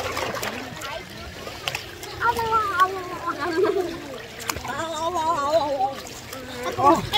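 A girl speaks and laughs close by.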